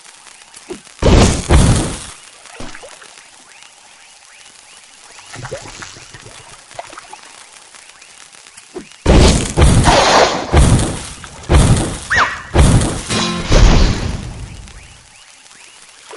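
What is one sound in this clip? Cheerful game sound effects pop and chime in bursts as pieces match and clear.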